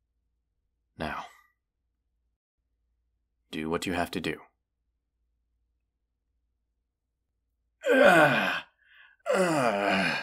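A young man speaks close to a microphone, in short dramatic phrases with pauses.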